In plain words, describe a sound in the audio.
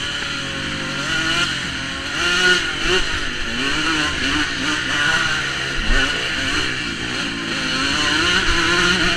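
A motorcycle engine revs and roars up close, rising and falling in pitch.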